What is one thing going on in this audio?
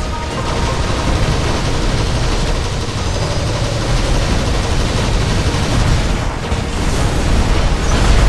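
Heavy metal footsteps thud and clank.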